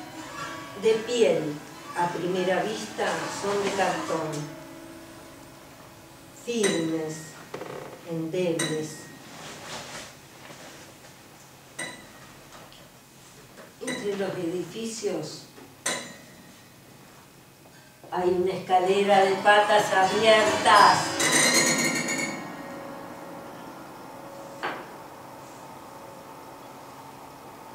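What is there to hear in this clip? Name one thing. A woman plucks and strums the strings inside a piano.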